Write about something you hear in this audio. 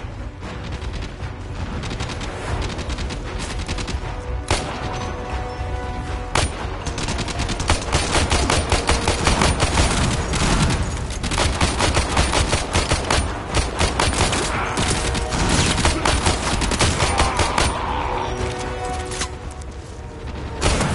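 Gunfire crackles rapidly in short bursts.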